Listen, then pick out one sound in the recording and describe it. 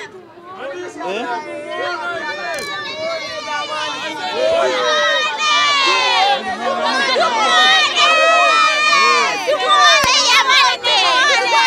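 A crowd of women and men shout and sing together outdoors.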